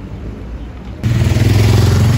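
A tram rumbles loudly nearby.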